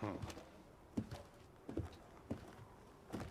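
Heavy footsteps thud slowly on hard ground.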